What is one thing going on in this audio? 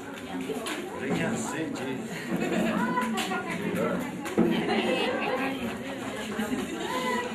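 A crowd of children and adults chatters and laughs close by.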